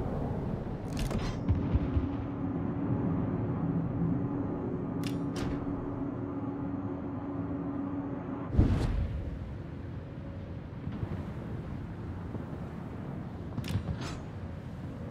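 Heavy naval guns boom several times.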